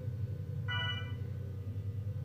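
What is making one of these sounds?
A computer beeps in a short electronic chime.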